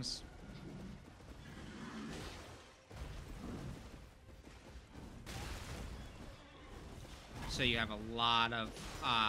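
Metal weapons clang and thud in a fight.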